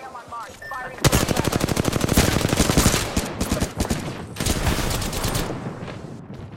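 Rapid gunfire bursts out loudly in quick volleys.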